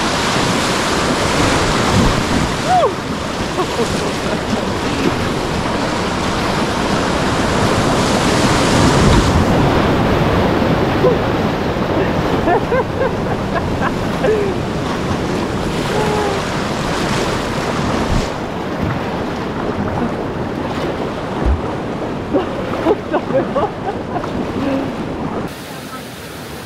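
A river rushes and splashes close by, loud and steady.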